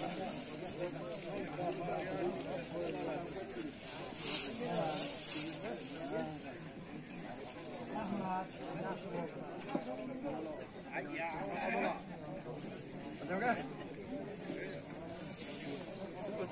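A crowd of elderly men talk and murmur all around outdoors.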